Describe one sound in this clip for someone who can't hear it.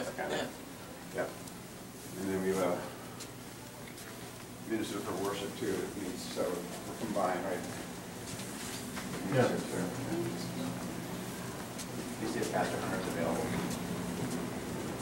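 A middle-aged man talks nearby.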